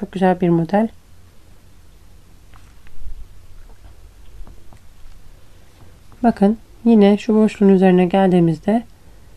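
A crochet hook softly scrapes and clicks through yarn.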